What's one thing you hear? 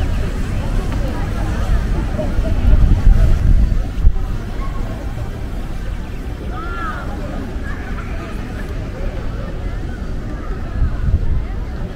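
A crowd of people chatters across a wide open square outdoors.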